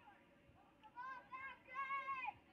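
A young woman nearby shouts loudly.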